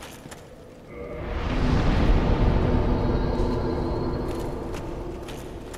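A fire flares up with a deep rushing roar that slowly fades.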